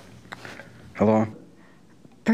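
A man speaks briefly and tensely into a phone.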